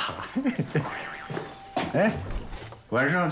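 A young man laughs and talks playfully nearby.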